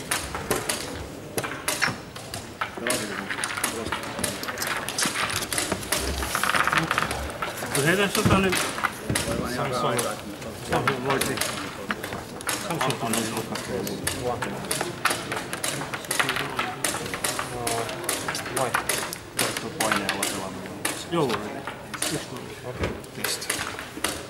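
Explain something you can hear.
A crowd of people murmurs and talks in a large echoing hall.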